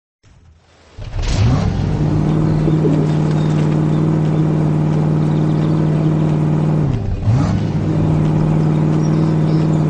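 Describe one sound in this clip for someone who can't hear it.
A cartoon truck engine rumbles steadily.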